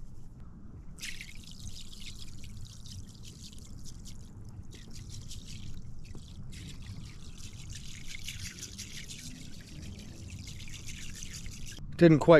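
Water pours and splashes into water.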